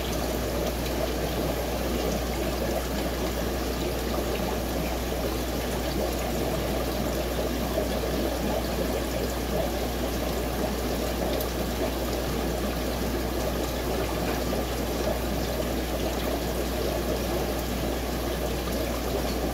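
A filter pump hums steadily.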